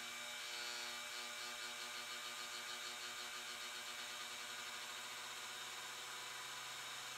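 A cotton candy machine hums and whirs steadily.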